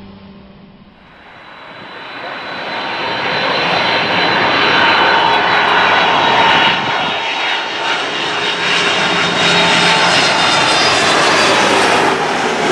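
A jet airliner roars loudly as it approaches low overhead.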